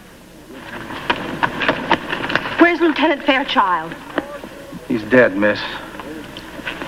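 An older man speaks gruffly.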